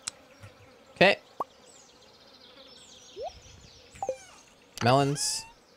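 A young man speaks briefly and casually, close to a microphone.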